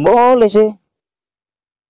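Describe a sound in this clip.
A young man calls out briefly in a loud, sung voice close by.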